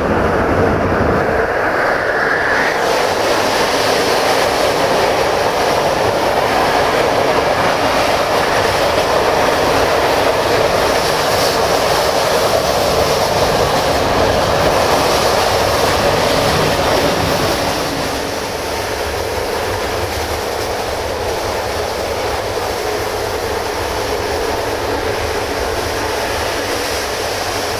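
A train rumbles and rattles steadily along the track.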